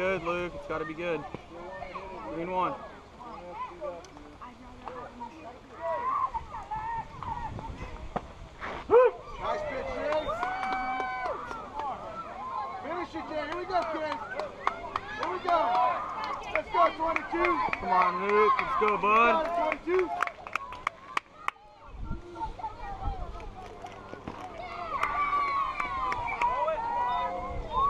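Young boys shout and cheer across an open field.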